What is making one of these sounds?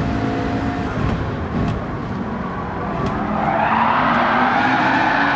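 A race car engine slows down with a low rumble as the car brakes.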